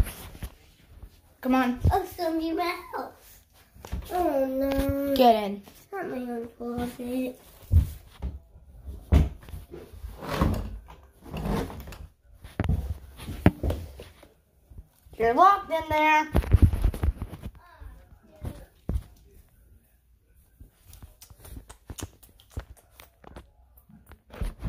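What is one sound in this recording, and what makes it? A phone rubs and bumps against clothing as it is handled.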